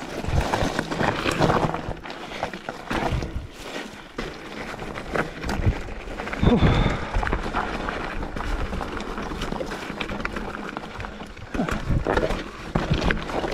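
A bicycle frame clatters and rattles over bumps.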